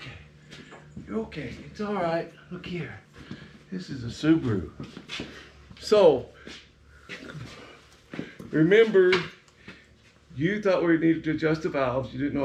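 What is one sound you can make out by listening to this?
An older man talks with animation, close by.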